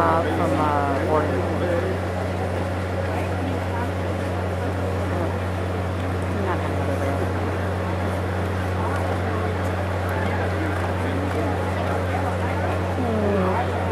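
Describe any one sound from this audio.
A crowd murmurs.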